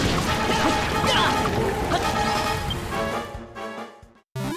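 A sword clashes and strikes in a fight.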